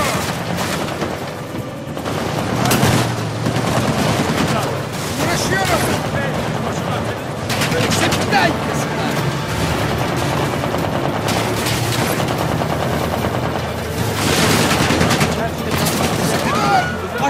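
A jeep engine rumbles steadily as it drives.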